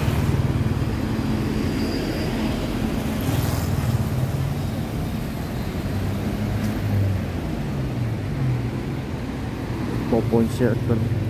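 Traffic passes on a road.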